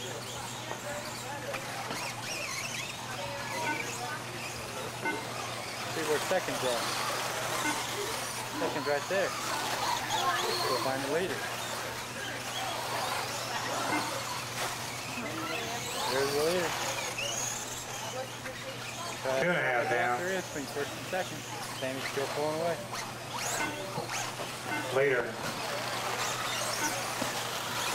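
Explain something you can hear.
Small electric motors of radio-controlled cars whine as the cars race around the track.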